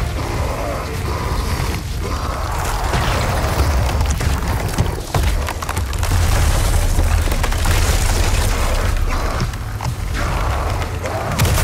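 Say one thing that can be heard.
A creature shrieks and growls.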